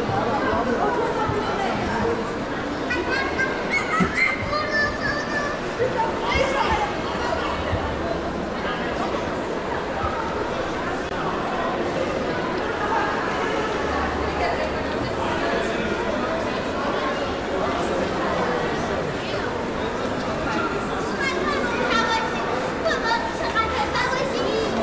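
A crowd of shoppers chatters in a large echoing hall.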